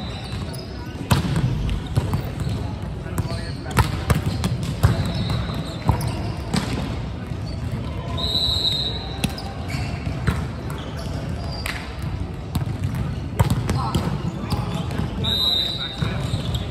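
A volleyball is struck with sharp slaps that echo in a large hall.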